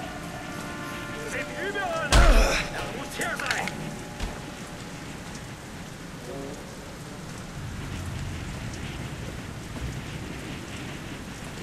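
Footsteps thud on wooden stairs.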